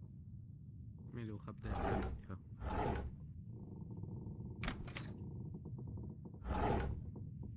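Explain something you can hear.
Wooden drawers slide open and bump shut.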